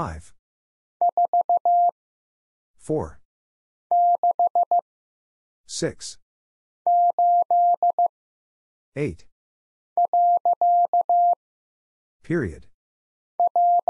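A telegraph key taps out Morse code in short and long steady beeps.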